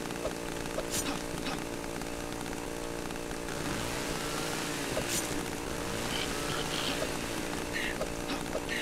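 A chainsaw engine drones and rattles steadily.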